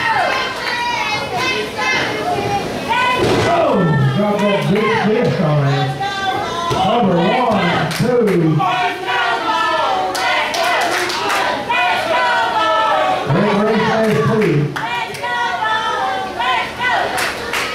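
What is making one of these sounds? A crowd of spectators shouts and chants loudly in an echoing hall.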